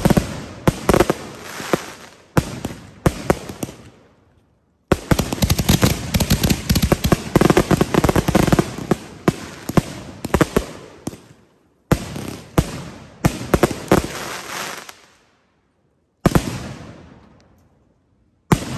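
A bonfire crackles and pops.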